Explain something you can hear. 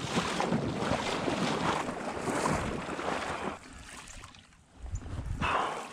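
Water splashes and sloshes close by.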